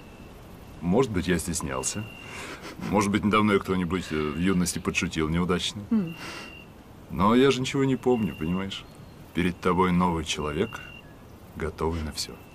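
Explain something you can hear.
A man speaks calmly and warmly.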